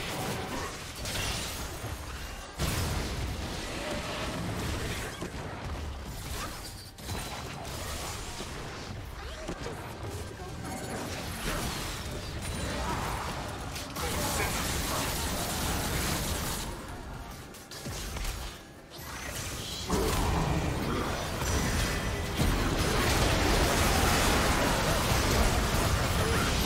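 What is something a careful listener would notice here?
Spell effects whoosh and crackle in a game fight.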